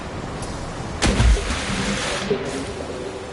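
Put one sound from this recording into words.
A blast bursts with a bright flash.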